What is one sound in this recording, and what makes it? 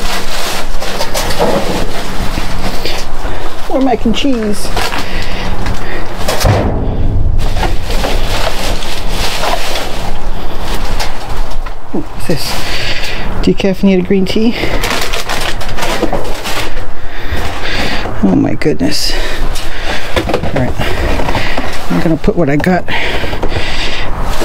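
Plastic bags rustle and crinkle as they are shifted about.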